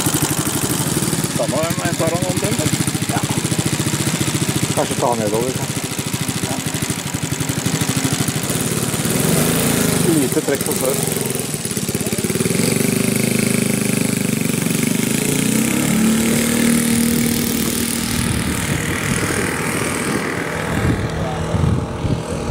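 A model plane's engine buzzes loudly and steadily.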